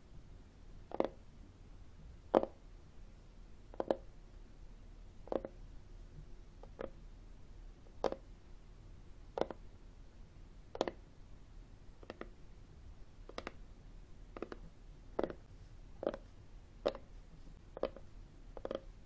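Fingernails tap on a hard book cover at an unhurried pace, close up.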